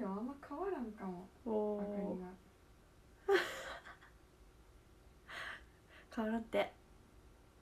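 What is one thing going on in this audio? A young woman speaks in a high voice close by, laughing shyly.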